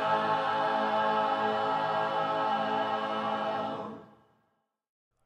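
A congregation sings a hymn together in a large room.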